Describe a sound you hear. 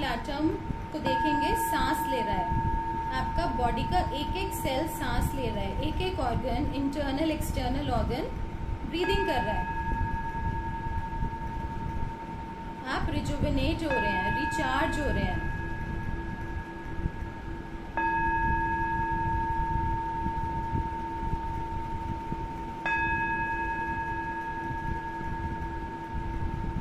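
A metal singing bowl is struck and rings with a long, steady hum.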